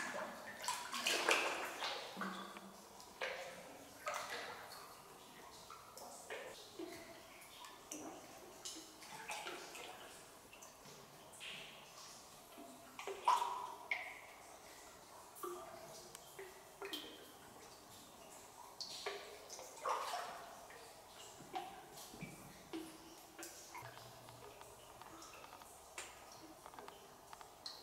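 Water splashes and sloshes as someone wades through shallow water in an echoing cave.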